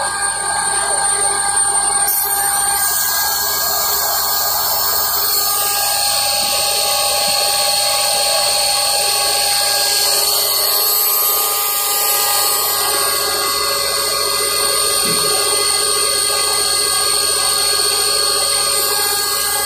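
A machine hums and whirs steadily with a loud, high whine.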